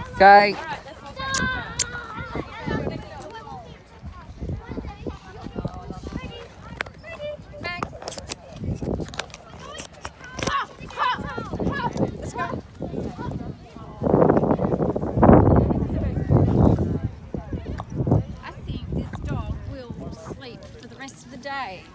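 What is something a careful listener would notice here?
Young girls shout and squeal with excitement outdoors.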